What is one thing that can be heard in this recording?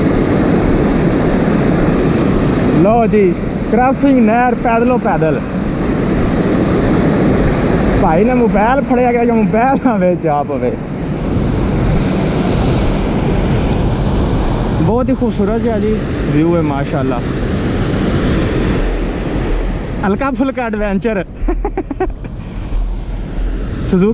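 Water rushes and churns loudly through a sluice.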